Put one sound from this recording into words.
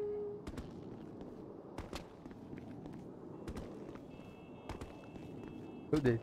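Footsteps slap quickly on pavement as a runner sprints.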